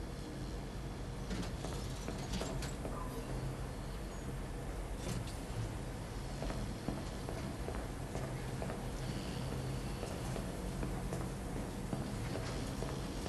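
Washing machines hum steadily.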